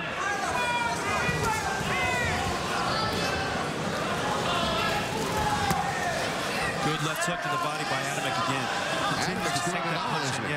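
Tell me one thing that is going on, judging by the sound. A crowd cheers and shouts in a large arena.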